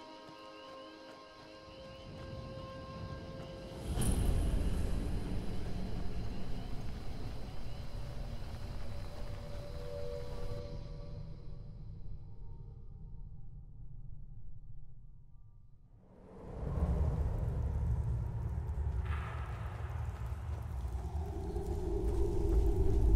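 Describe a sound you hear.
Footsteps crunch on gravel and snow.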